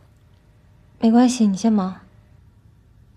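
A young woman answers softly and close by.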